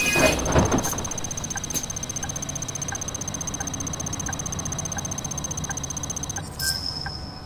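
A bus indicator ticks at an even pace.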